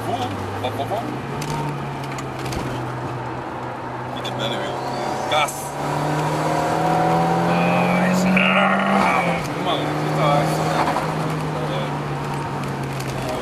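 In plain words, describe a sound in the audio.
A car engine hums steadily from inside the car, rising and falling in pitch as it speeds up.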